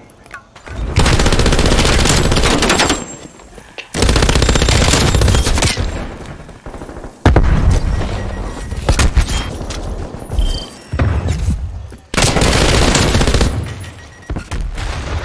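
A gun fires rapid bursts of loud shots.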